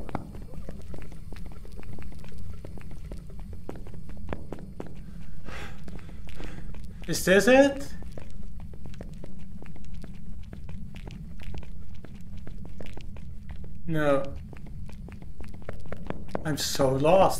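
Footsteps walk slowly along a hard floor.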